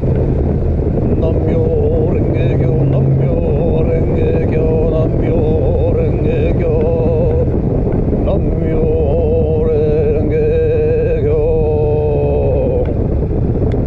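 A motorcycle engine echoes inside a tunnel.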